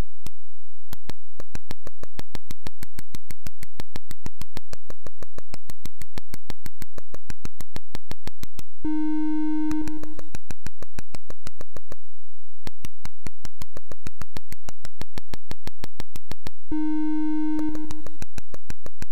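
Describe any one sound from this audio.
Rapid, sharp electronic ticks patter steadily as a game character digs through the ground.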